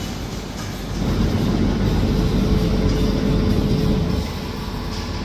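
A machine hums and rumbles loudly for a few seconds.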